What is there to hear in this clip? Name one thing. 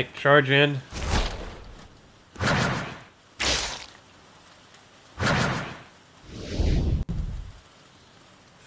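Game sound effects swoosh and thud in short bursts.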